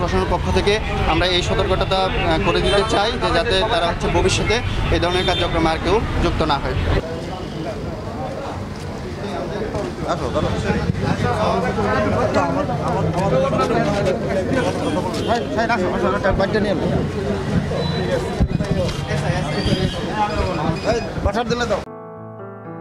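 Several men talk over one another in a crowd outdoors.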